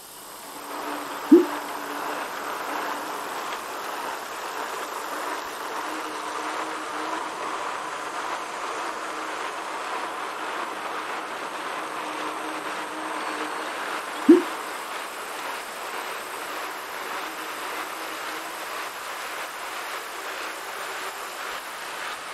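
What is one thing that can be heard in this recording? An indoor bike trainer whirs steadily.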